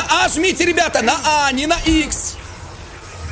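A young man shouts with excitement into a microphone.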